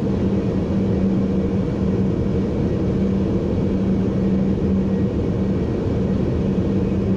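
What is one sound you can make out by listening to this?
A train's motor hums with a steady low tone.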